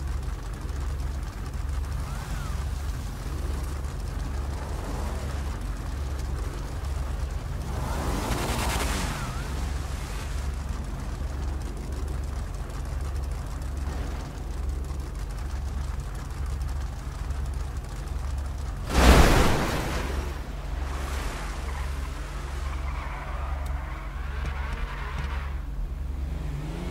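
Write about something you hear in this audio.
Car engines idle with a low, steady, pulsing rumble.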